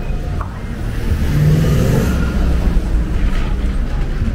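A delivery truck's engine rumbles close by as it passes.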